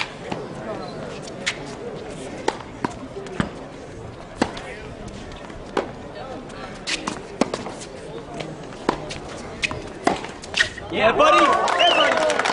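Tennis rackets strike a ball back and forth in a sharp, steady rally.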